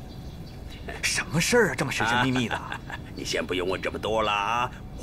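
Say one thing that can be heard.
A middle-aged man speaks with animation nearby.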